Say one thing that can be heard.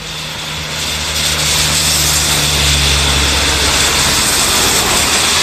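A car drives past with tyres hissing on a wet road.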